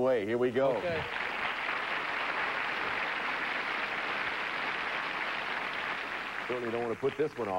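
A studio audience applauds steadily.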